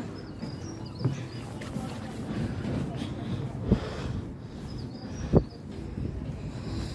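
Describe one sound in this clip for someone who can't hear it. Footsteps thump on wooden boards.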